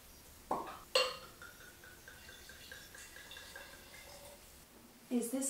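Wine pours from a bottle into a glass.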